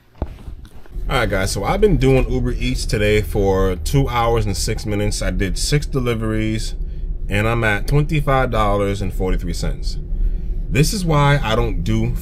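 A young man talks calmly and closely to the microphone.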